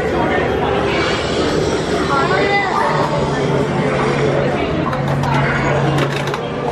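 A crowd of people chatters nearby in a busy indoor space.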